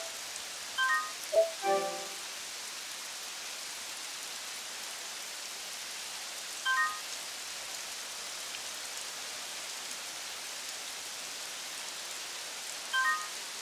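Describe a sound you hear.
Short electronic menu chimes ring out.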